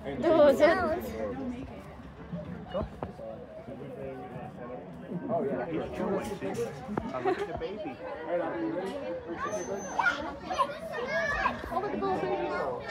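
Several adults talk and chatter nearby, outdoors.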